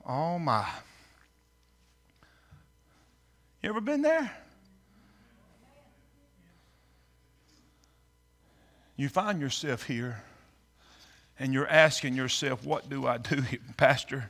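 A middle-aged man preaches with animation through a microphone, pausing between phrases, in a reverberant hall.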